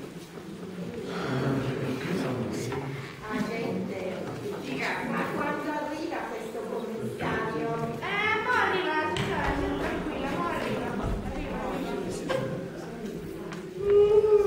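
A woman speaks loudly on a stage, heard from a distance.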